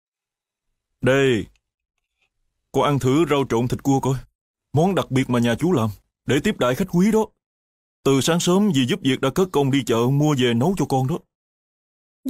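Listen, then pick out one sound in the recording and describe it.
A man speaks calmly at close range.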